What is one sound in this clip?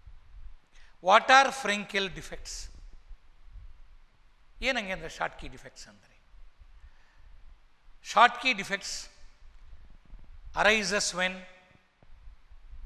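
An elderly man speaks calmly into a clip-on microphone, in short phrases with pauses.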